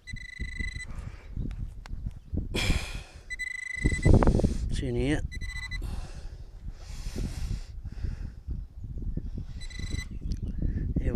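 A metal detector gives short, high, steady beeps.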